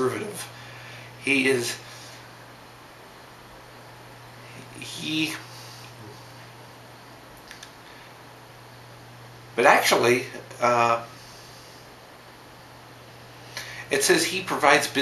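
A young man talks casually in short bursts, close to a microphone.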